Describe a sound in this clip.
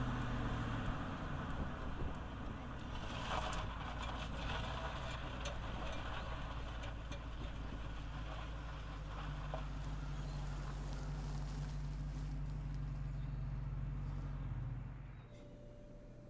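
A car engine hums as it drives along a road.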